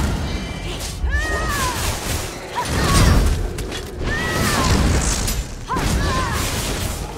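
Giant spiders screech.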